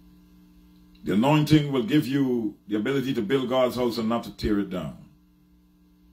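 An elderly man speaks calmly and earnestly into a close microphone.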